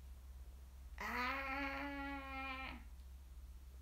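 A young woman calls out a long, drawn-out cry close by.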